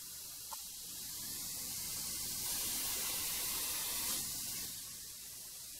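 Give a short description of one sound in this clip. A vacuum hose sucks up dust with a soft rushing hiss.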